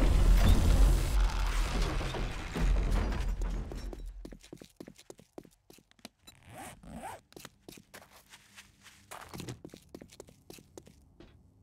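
Footsteps crunch on gravel and then tap on pavement.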